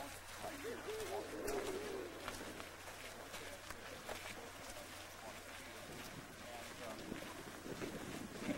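Footsteps crunch on a gravel road as a group walks.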